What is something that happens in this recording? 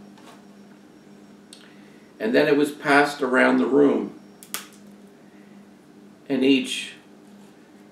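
Crisp flatbread snaps as it is broken.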